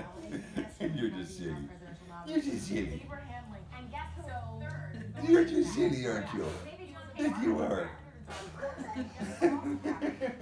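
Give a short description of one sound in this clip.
A woman laughs nearby.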